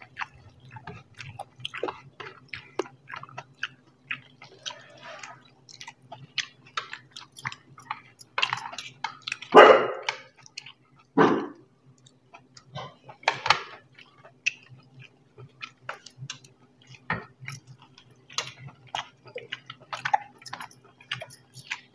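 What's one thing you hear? Fingers squish and mix food on plates.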